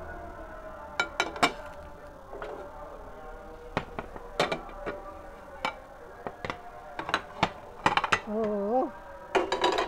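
Plates and a metal pan clink and clatter against a stove.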